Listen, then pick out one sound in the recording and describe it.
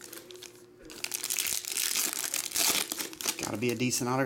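A foil wrapper crinkles as it is torn open.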